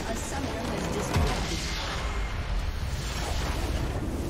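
A large crystal bursts with a deep, booming explosion.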